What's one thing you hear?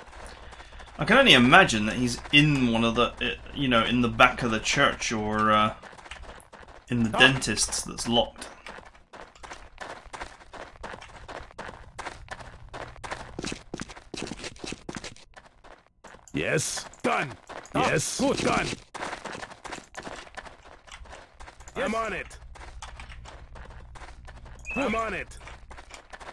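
A man commentates through a microphone.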